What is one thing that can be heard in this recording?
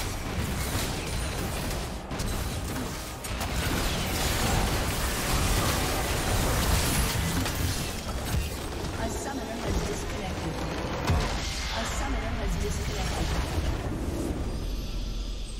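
Game battle effects crash and blast in rapid bursts.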